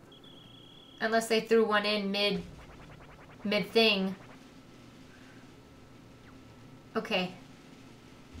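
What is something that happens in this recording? A young woman speaks close to a microphone, in short bursts with animation.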